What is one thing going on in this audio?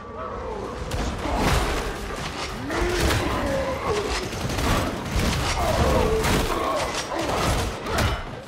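Heavy blows thud and crunch against flesh and armour.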